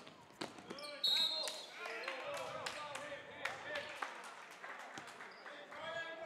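A crowd cheers and shouts in an echoing gym.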